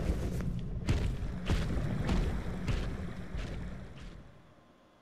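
Heavy armoured footsteps thud on stone.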